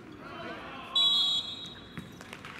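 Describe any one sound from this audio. A referee blows a short, shrill whistle.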